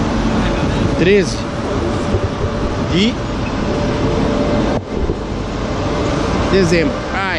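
A man speaks briefly close to the microphone.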